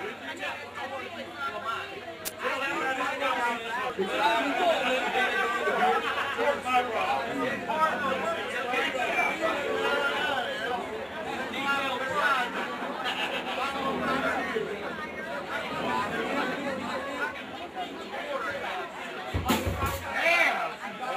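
A rock band plays through loudspeakers outdoors.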